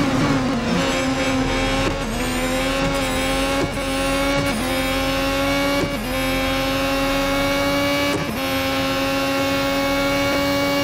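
A racing car engine revs up again, with short breaks at each gear change.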